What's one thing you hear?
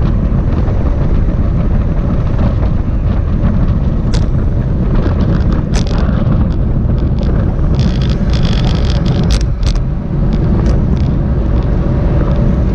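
Bicycle tyres hum on asphalt.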